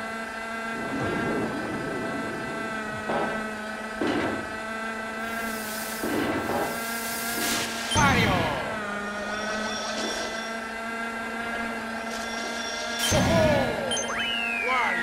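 Tyres skid and drift with hissing bursts.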